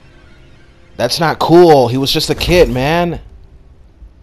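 A man speaks in a deep, menacing voice.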